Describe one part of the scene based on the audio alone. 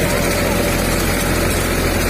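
A spray hose hisses loudly.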